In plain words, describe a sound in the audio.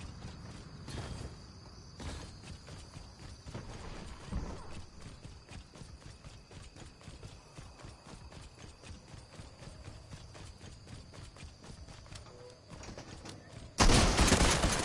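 Footsteps run steadily across hard ground.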